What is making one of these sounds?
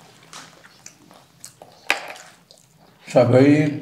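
Crispy fried chicken crunches between teeth.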